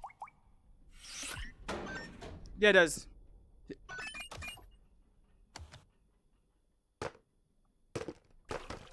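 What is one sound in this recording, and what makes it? Video game buttons beep and click as they are pressed.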